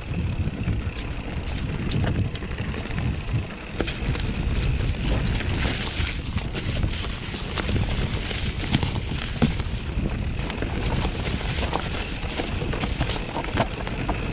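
Bike tyres crunch over dry leaves and stones.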